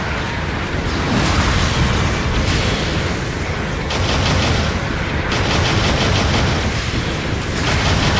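Heavy metal footsteps thud.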